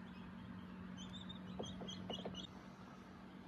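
Chicks peep in short, high chirps.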